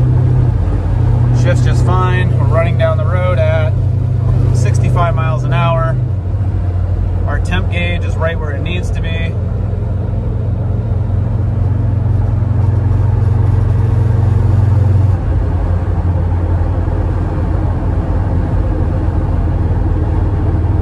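Tyres roll on a highway with a low, steady roar.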